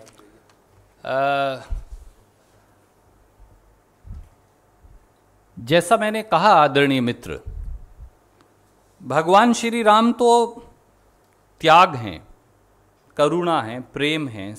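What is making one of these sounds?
A middle-aged man speaks calmly into microphones, pausing between phrases.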